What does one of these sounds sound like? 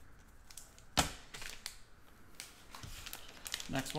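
Foil wrappers crinkle as a hand handles them.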